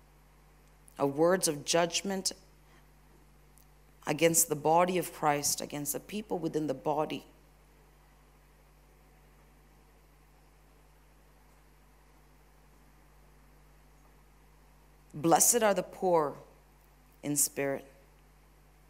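A woman speaks calmly into a microphone over loudspeakers, with long pauses.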